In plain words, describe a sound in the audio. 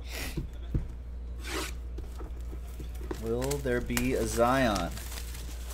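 Plastic wrap crinkles as it is peeled from a box.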